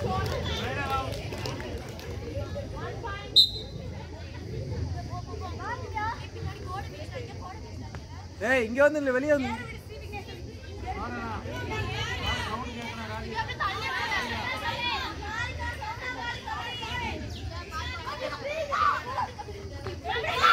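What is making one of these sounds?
Young girls shout and chant with excitement outdoors.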